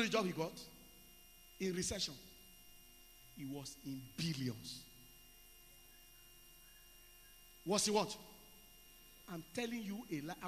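A man speaks with animation through a microphone, in short bursts with pauses.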